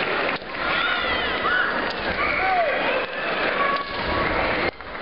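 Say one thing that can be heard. A crowd cheers and calls out in a large echoing hall.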